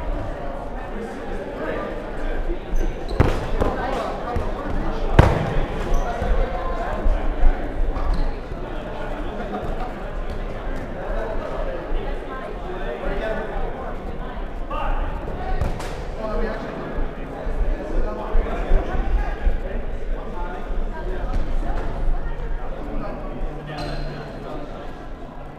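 Players' shoes squeak and thud on a hard court in a large echoing hall.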